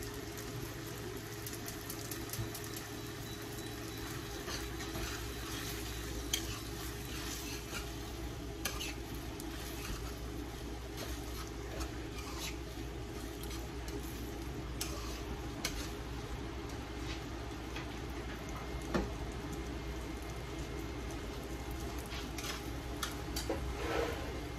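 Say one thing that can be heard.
Vegetables sizzle in a frying pan.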